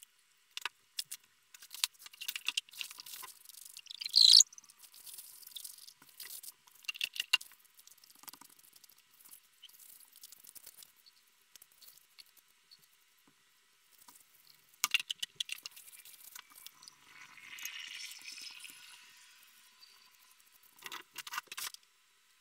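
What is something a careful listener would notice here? Small clicks and taps of plastic and glass on a work mat.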